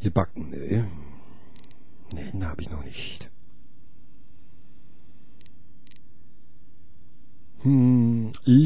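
An adult man talks with animation into a close microphone.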